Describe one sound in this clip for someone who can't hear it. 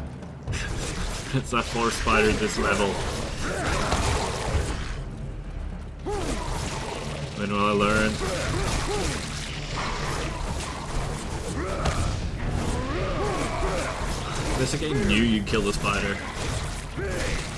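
A giant creature shrieks and hisses.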